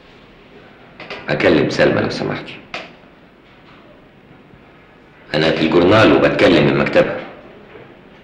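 A man speaks into a telephone with animation, close by.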